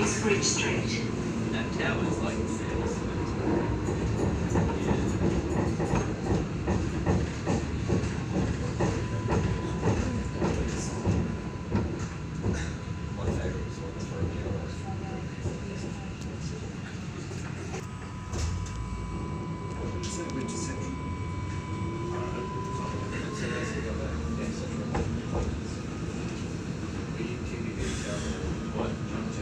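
A tram's wheels clatter and rattle over the rails.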